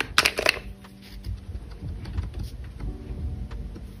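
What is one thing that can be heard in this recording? Correction tape rolls across paper with a soft rasp.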